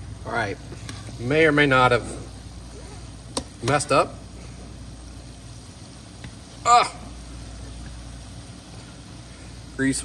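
Hot oil sizzles and bubbles in a pot.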